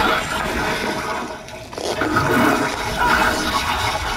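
An icy blast crashes and roars.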